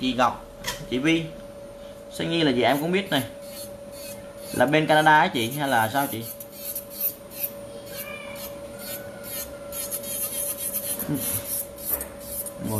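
A small electric nail drill whirs steadily with a high hum.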